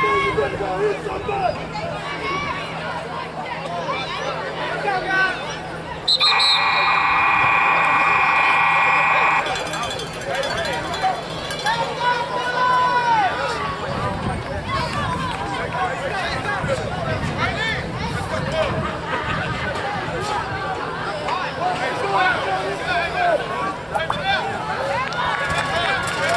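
Young players shout and chatter across an open field.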